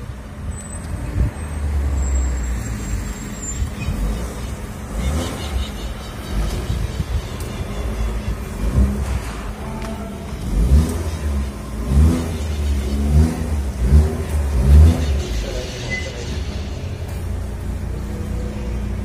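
A car engine rumbles as the car drives off and turns.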